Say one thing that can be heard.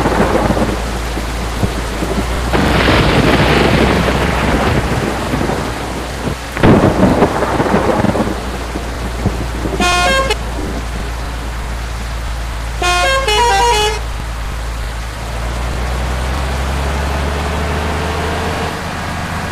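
A diesel engine rumbles steadily.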